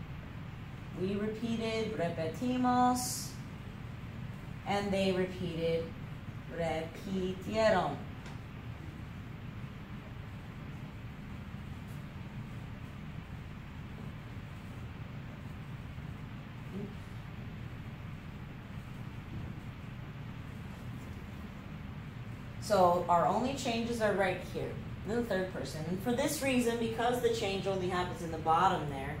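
A woman speaks calmly and clearly, as if teaching, close by.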